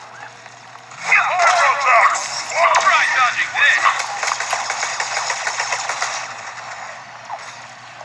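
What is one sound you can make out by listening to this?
Rapid gunfire crackles from a handheld game console's small speakers.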